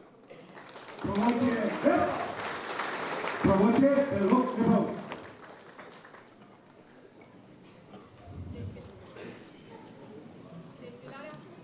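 A man speaks formally through a microphone and loudspeakers.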